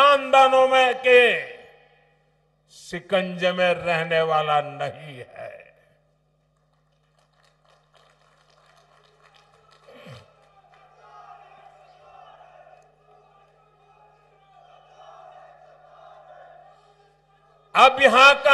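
An elderly man speaks forcefully through a loudspeaker in a large open space.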